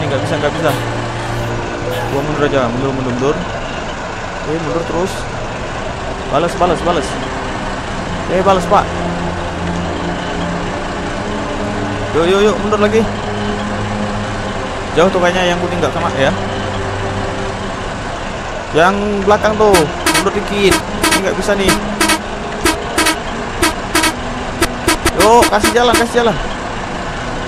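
A bus engine hums low and steady.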